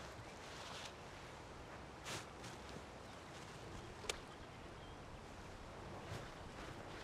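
A small stone plops into still water.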